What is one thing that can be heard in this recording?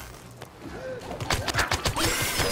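Rapid gunfire crackles and pops.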